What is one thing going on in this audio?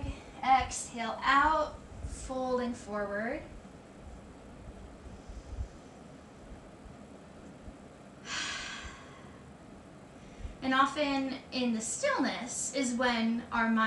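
A woman speaks calmly and softly, as if guiding, close to a microphone.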